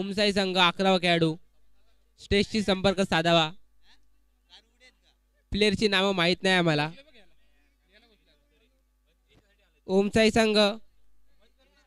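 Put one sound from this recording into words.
A young man shouts instructions.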